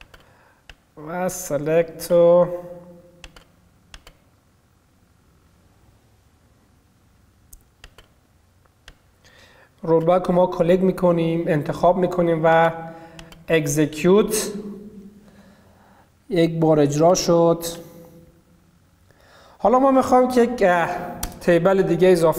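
A young man speaks calmly into a microphone, in bursts with pauses.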